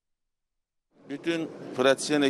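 A man speaks close to microphones.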